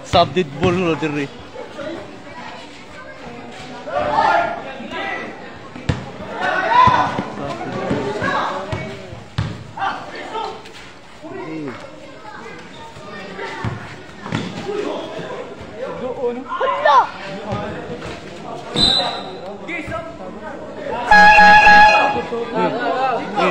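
Young men shout and call out during a game.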